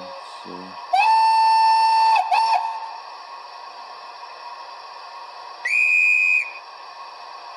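A model steam locomotive sounds a shrill whistle twice.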